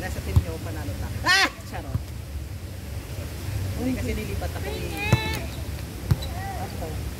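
A volleyball thumps as players hit it back and forth.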